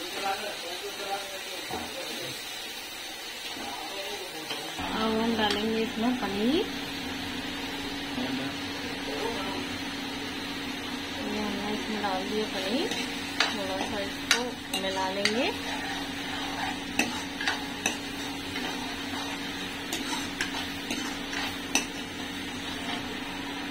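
A metal ladle scrapes and clinks against a pan.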